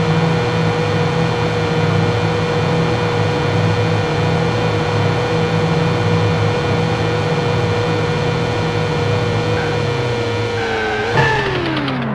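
A racing car's engine screams at high speed.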